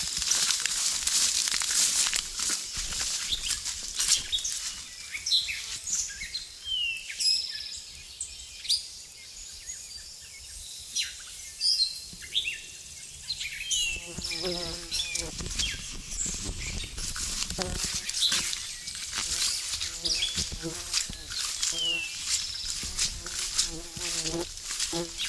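Footsteps swish through grass and leaves.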